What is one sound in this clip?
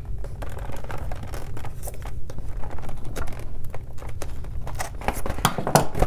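A knife blade slices through cardboard.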